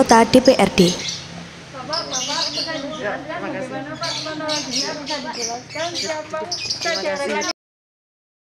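Young women chatter excitedly at close range.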